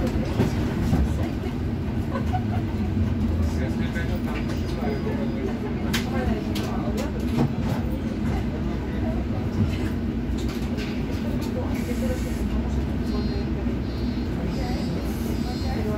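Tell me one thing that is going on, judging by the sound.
Bus fittings rattle and clatter as the bus drives along.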